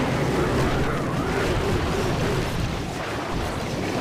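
Small cartoon weapons clang and blast in a battle.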